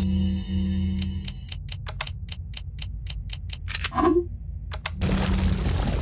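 Short menu clicks tick in quick succession.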